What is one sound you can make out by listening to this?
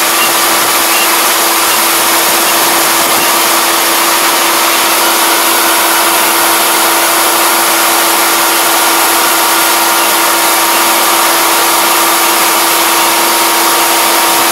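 A combine harvester's unloading auger drones.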